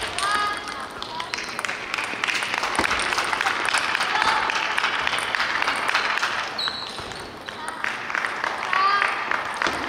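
A table tennis ball clicks back and forth across a table in a large echoing hall.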